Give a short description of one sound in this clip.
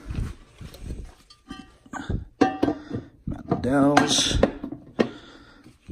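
Metal engine parts clink and scrape as they are handled.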